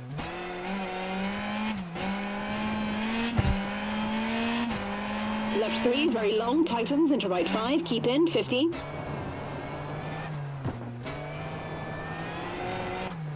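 A rally car engine hums and revs, shifting through gears.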